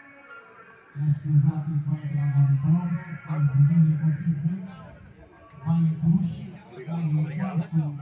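A woman talks loudly close by.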